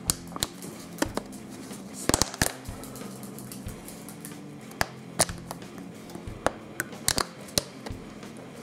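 A plastic bottle crinkles and clicks in a hand.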